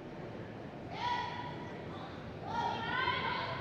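A young woman shouts loudly, echoing in a large hall.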